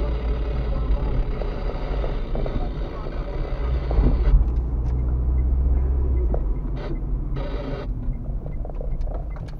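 A car engine hums steadily from inside the car as it drives along a street.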